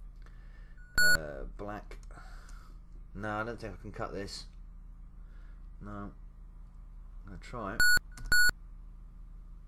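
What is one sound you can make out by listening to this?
Short electronic beeps come from a computer game.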